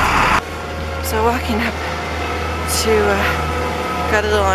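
A woman speaks close up, a little breathless.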